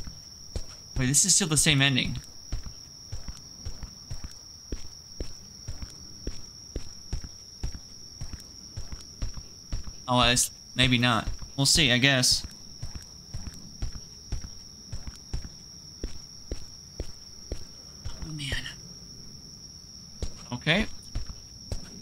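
A man speaks in short bursts, close to a microphone.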